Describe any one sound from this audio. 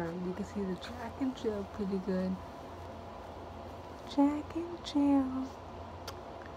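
A woman talks close by in a soft, playful voice.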